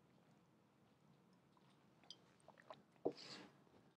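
A glass is set down on a hard surface with a knock.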